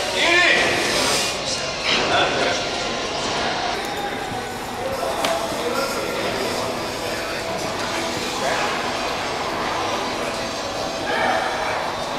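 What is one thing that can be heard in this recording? Young men shout encouragement in a large echoing hall.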